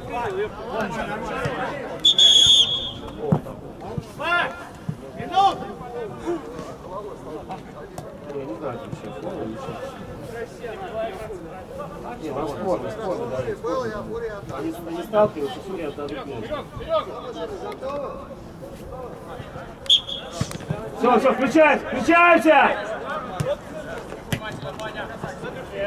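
Men shout and call out to each other across an open pitch.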